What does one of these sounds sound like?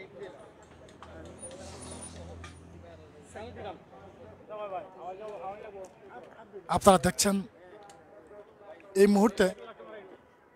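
Several men talk loudly nearby.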